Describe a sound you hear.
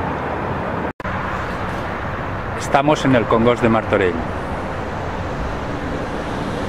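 Traffic rumbles along a high bridge.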